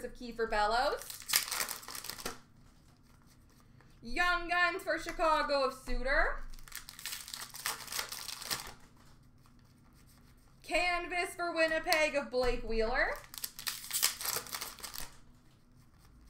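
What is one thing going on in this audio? Hands rustle and shuffle trading cards and crinkle foil packs.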